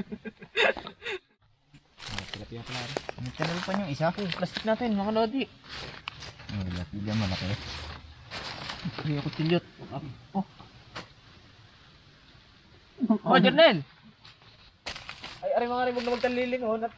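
Young men talk and laugh nearby.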